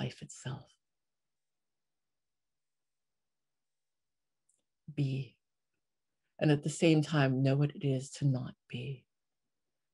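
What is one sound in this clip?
A young woman speaks calmly through an online call, pausing between phrases.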